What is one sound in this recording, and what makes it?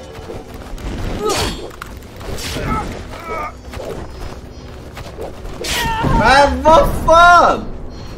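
A man speaks loudly and excitedly into a microphone.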